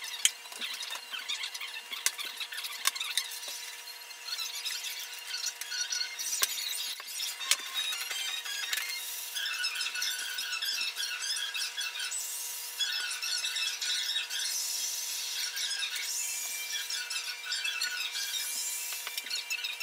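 Fingers rub and scrape across a smooth plastic surface.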